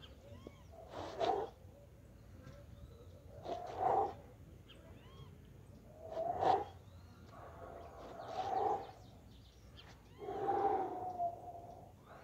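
A man breathes out hard with effort, in short bursts.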